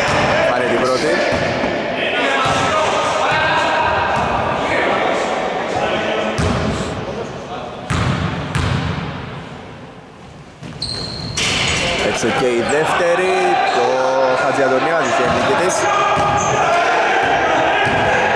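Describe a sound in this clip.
Young men shout and call out across an echoing hall.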